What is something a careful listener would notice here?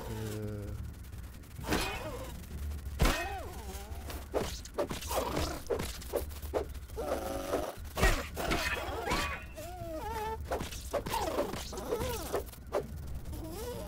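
A blade strikes a large insect with sharp, repeated hits.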